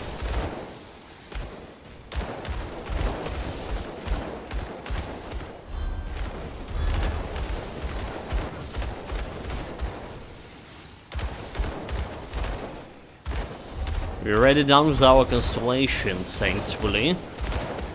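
Game spells crackle and whoosh in quick bursts.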